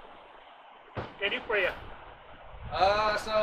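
A man speaks from a short distance.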